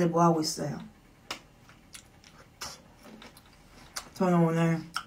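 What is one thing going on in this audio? A young woman chews food with soft smacking sounds.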